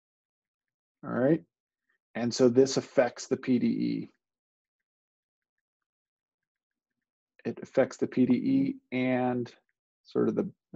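A man speaks calmly into a microphone, explaining in short bursts with pauses.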